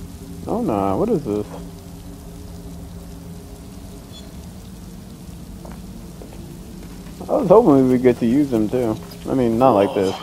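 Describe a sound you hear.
Footsteps crunch slowly on a dirt path.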